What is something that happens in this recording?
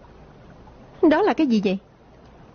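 A young woman speaks with surprise.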